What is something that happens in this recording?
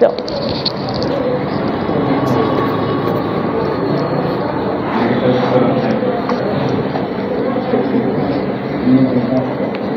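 A felt eraser rubs and squeaks across a whiteboard.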